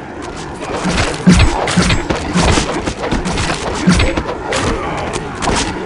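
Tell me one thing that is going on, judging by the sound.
A blade swishes and slashes with wet impacts.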